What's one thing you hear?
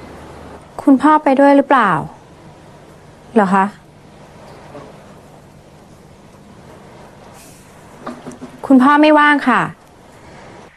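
A young woman speaks on a phone.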